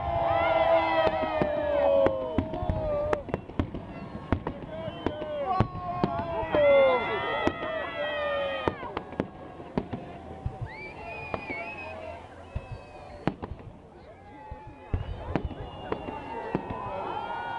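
Fireworks pop and crackle in the distance, over and over.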